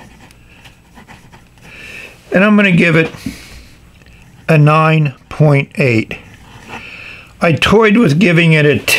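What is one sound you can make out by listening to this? A fountain pen nib scratches softly across paper.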